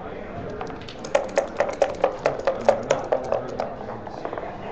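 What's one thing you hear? Dice rattle rapidly inside a cup.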